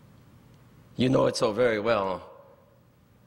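An elderly man speaks through a microphone in an echoing hall.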